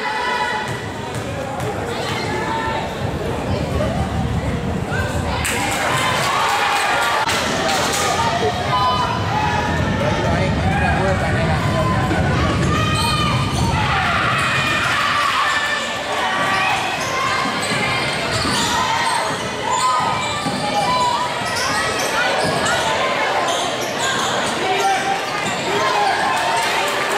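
Young women shout and call out across an echoing gym.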